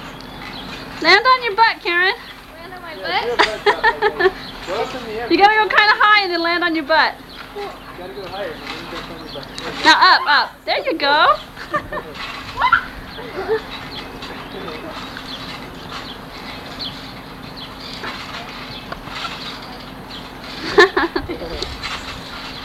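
Young girls shout and squeal excitedly close by, outdoors.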